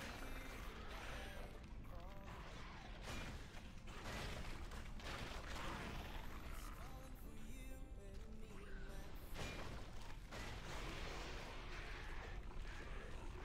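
Fiery spell blasts whoosh and crackle in a game fight.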